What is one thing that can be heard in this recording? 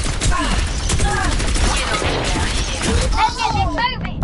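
Rapid gunfire blasts from a weapon.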